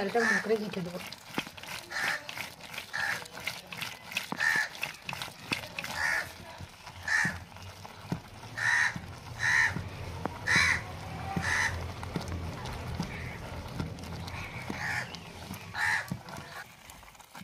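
A wooden masher thumps and squelches in a pot of thick stew.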